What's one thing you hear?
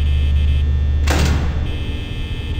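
A heavy metal door slams shut.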